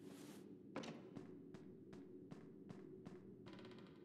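Footsteps tap steadily across a wooden floor.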